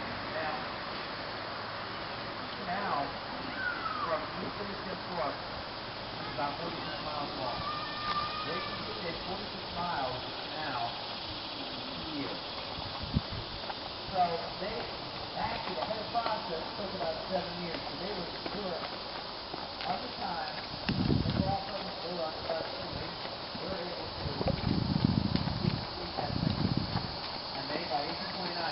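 Horses' hooves crunch and clop on a gravel path.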